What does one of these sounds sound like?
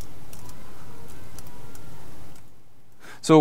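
Keys clatter as a man types on a laptop keyboard.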